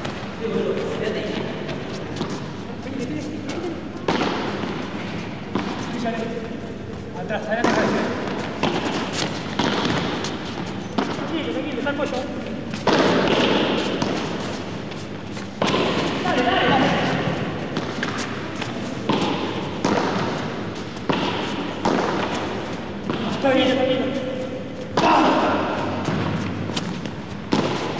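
A ball is struck back and forth with paddles.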